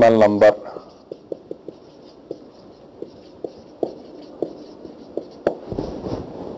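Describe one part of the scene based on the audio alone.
A marker taps and scratches on a whiteboard.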